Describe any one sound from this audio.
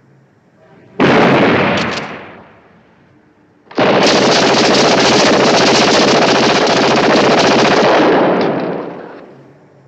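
A submachine gun fires long, rapid bursts, loud and close.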